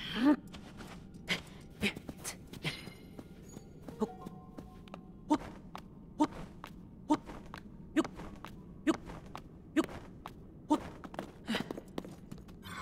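A game character's hands grip rock in a steady climbing rhythm.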